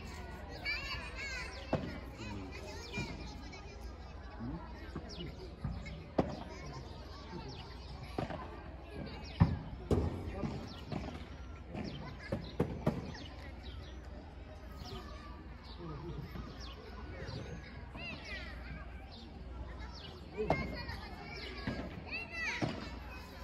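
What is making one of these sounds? Shoes squeak on the court.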